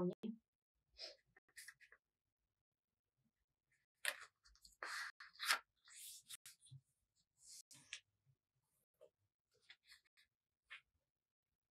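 Paper rustles and creases as it is folded.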